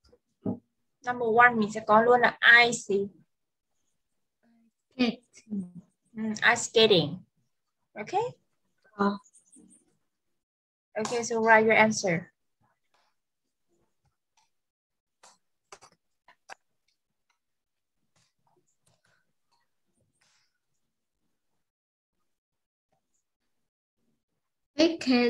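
A young girl speaks through an online call, in short bursts.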